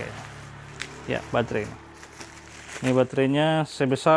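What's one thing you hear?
Plastic wrapping crinkles in a man's hands.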